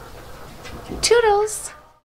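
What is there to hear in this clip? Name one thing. A duckling peeps shrilly.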